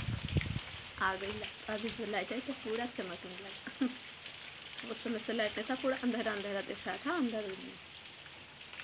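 A young woman speaks close to the microphone in a calm voice.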